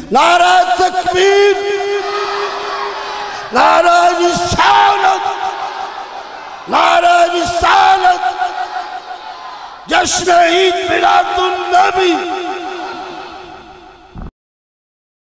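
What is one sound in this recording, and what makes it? A group of men chant loudly together.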